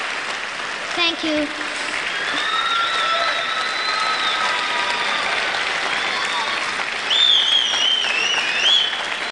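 People in a crowd whistle and cheer.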